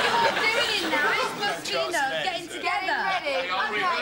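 Young women talk into microphones over a loudspeaker.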